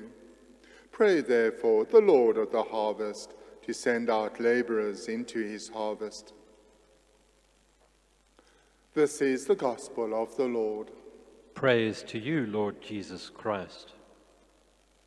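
An elderly man speaks calmly into a microphone in a room with a slight echo.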